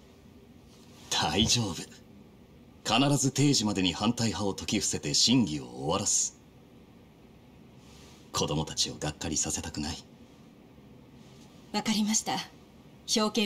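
A man speaks in a reassuring, upbeat voice.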